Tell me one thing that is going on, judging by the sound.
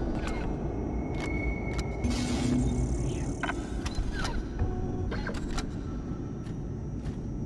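Short electronic beeps chirp from a menu.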